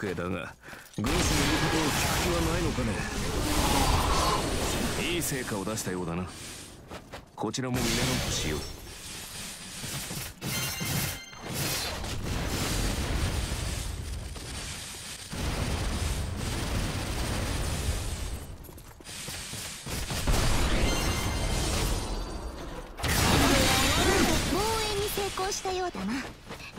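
Energy blasts burst loudly again and again.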